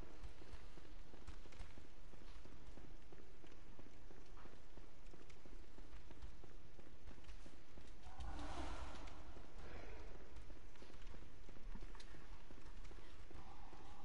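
Footsteps run quickly over stone steps and floors.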